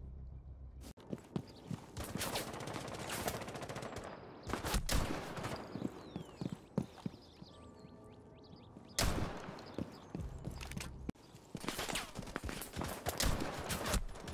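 Rapid gunfire cracks in short bursts.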